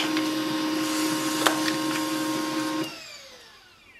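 A printer hums steadily, then stops.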